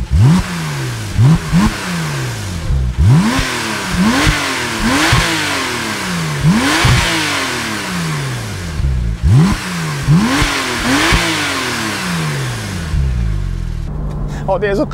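A sports car engine revs hard and pops repeatedly close by.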